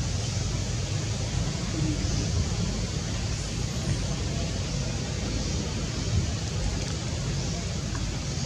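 Wind rustles through tree leaves outdoors.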